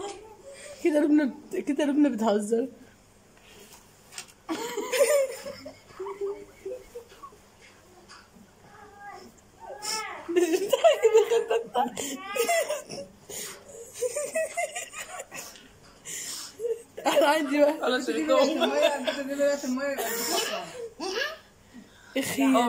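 A second young woman talks and laughs close by.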